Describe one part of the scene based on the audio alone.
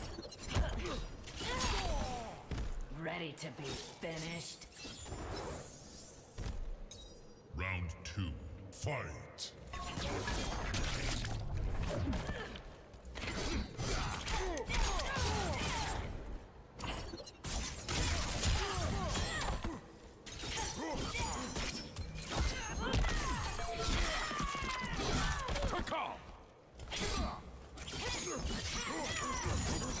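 Fighters grunt and shout as they trade blows.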